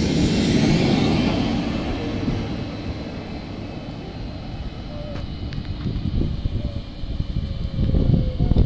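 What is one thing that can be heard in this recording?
A train rumbles past along the platform and then pulls in slowly.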